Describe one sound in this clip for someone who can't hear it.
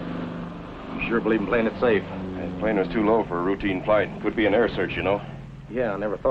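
A man speaks in a low, urgent voice.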